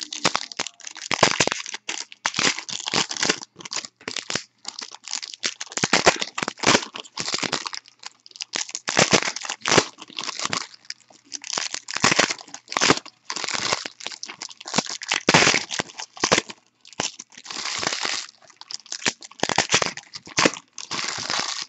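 Plastic wrappers crinkle and rustle close up as hands tear open packs.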